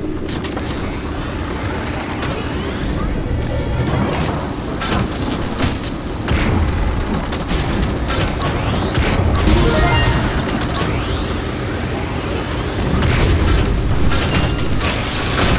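Weapons in a video game fire in quick, sharp bursts.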